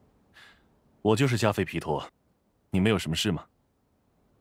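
A young man speaks calmly and politely.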